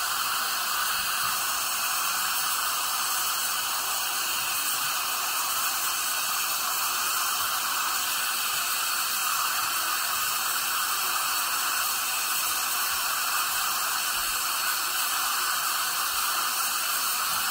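A dental suction tube hisses and slurps steadily.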